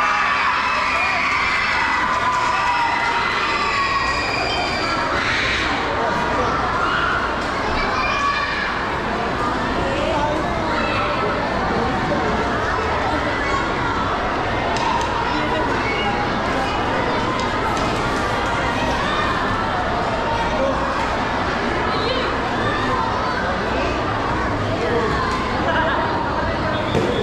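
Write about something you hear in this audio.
A marching band plays drums and lyres loudly under a large echoing roof.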